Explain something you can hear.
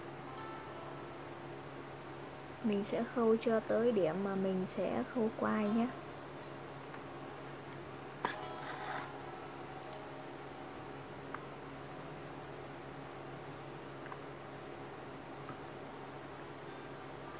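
A needle and thread pull through a thick shoe sole with soft scratching.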